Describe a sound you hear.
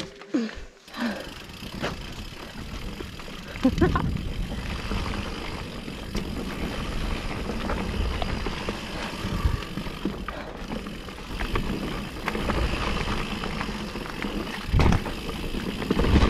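Bicycle tyres roll and rattle over a bumpy dirt trail.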